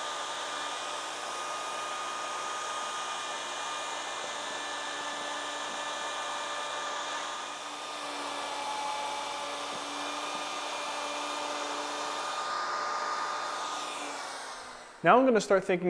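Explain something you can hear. A wood router whines steadily as it cuts into wood.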